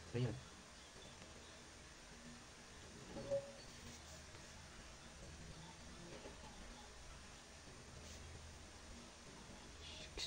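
Hands rub softly against skin.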